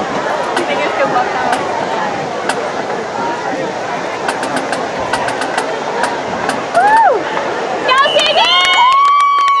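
A crowd chatters outdoors in the distance.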